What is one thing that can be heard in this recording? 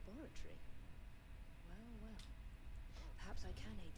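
A gruff man speaks calmly.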